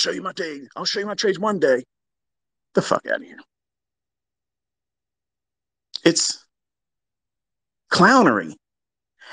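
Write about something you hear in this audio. A man speaks in short bursts close to a microphone, with pauses between.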